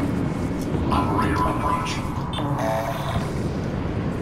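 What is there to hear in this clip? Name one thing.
An electronic device beeps and whirs.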